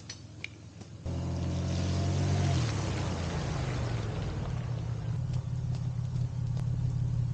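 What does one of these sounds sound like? Tyres hiss on a wet road as a truck passes.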